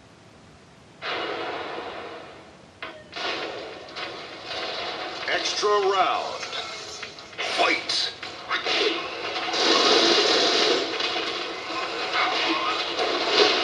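Game music plays loudly from a television.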